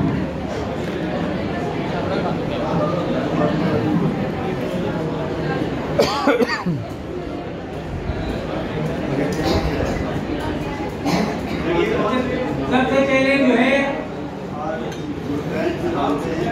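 An elderly man speaks to a room, heard from across an echoing hall.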